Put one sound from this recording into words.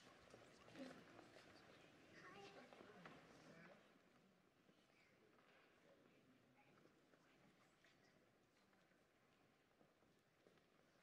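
A crowd of people chat and murmur in a large echoing hall.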